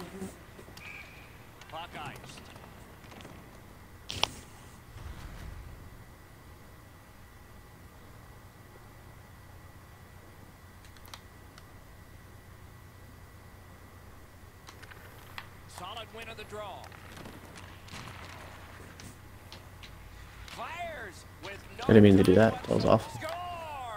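Ice skates scrape and hiss across ice.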